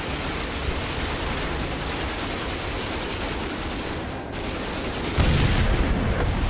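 A mounted machine gun fires rapid, loud bursts.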